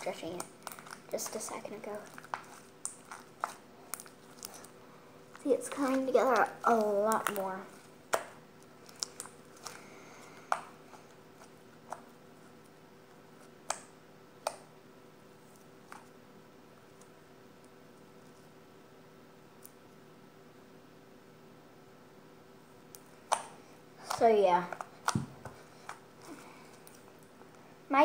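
Soft slime squishes and sticks between fingers.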